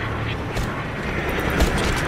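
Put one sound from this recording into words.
A helicopter's rotor whirs and thumps overhead.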